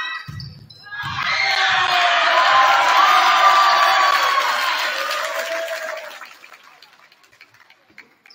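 A crowd cheers loudly after the rally ends.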